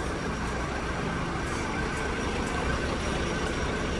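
A fire engine idles nearby with a low steady rumble.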